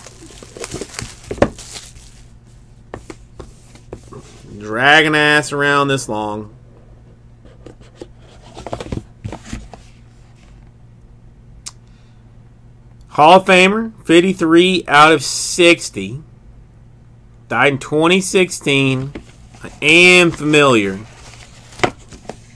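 A cardboard box is handled and tapped, with short soft knocks and rustles.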